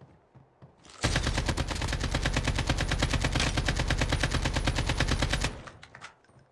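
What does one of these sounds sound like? An automatic rifle fires rapid shots in a video game.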